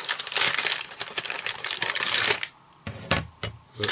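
A plastic part clatters onto a mat.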